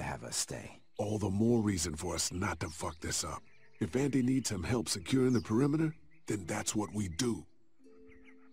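A second man answers firmly and close by.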